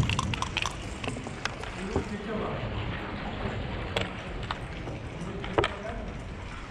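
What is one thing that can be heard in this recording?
Backgammon checkers click as they are slid and set down on a board.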